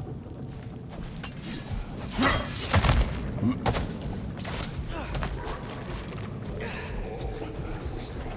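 Heavy footsteps crunch on snow.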